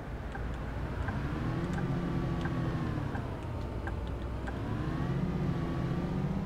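A diesel city bus engine revs as the bus pulls away.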